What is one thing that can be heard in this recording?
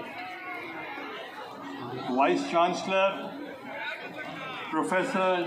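A man speaks formally into a microphone over loudspeakers.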